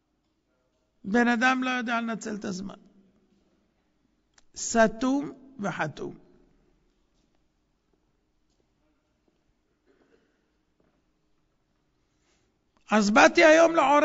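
A middle-aged man speaks into a microphone in a calm lecturing voice, with long pauses.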